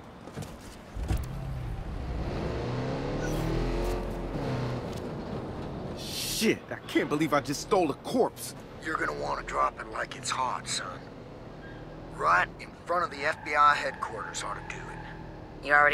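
A van engine starts and revs as the van drives off.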